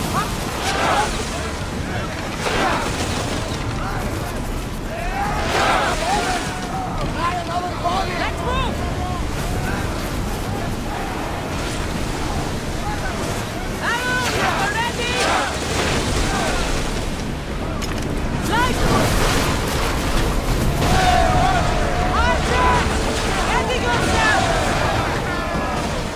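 Waves splash and churn against wooden ships.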